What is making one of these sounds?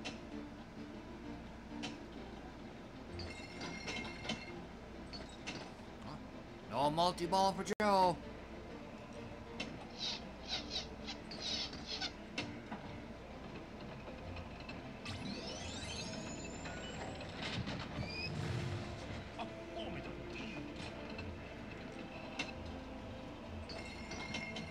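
A pinball game plays electronic chimes and effects.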